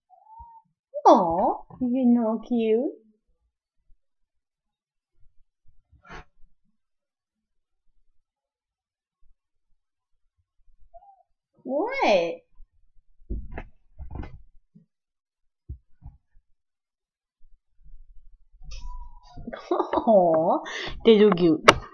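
A young woman talks close by in a high, playful voice.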